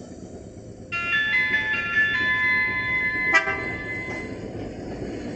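A tram sounds its horn with loud, repeated tones.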